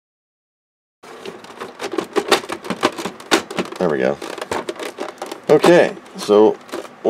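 Plastic casing panels knock and click as hands fit them together.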